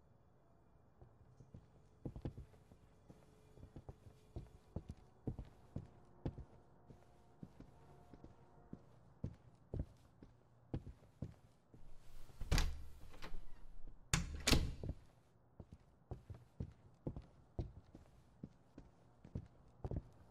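Footsteps thud slowly across a floor indoors.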